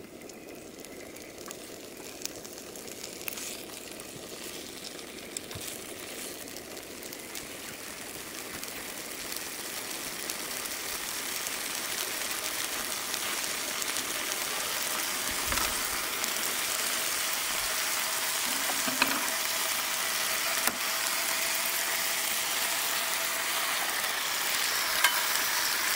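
Bacon sizzles in a frying pan.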